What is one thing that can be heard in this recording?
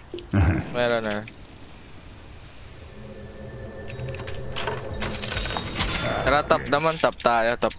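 Weapons clash and spells burst in a fight.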